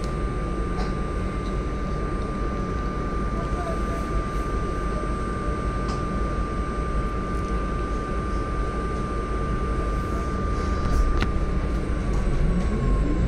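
A hybrid city bus hums while standing still.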